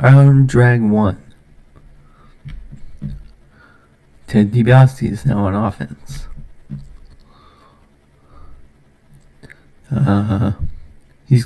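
A young man talks casually and close to a microphone, in short bursts with pauses.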